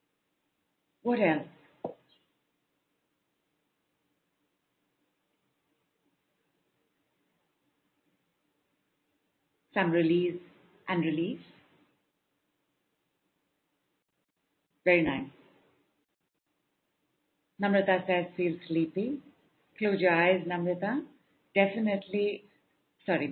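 A woman speaks calmly and warmly, close to a microphone, in short phrases with pauses.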